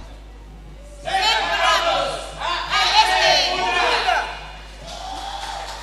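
A group of men and women recite loudly together through loudspeakers in an echoing hall.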